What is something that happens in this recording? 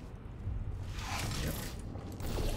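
A heavy mechanical door slides shut.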